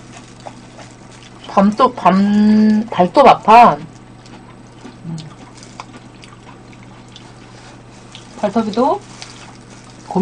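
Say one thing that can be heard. A young woman eats and chews noisily close to a microphone.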